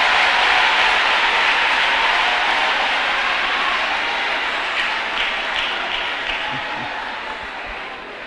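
A large crowd cheers and shouts loudly, then slowly fades.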